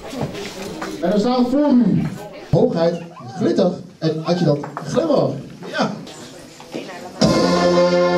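A man speaks through a microphone over loudspeakers.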